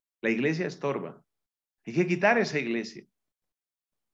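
A man speaks calmly into a microphone, heard as if through an online call.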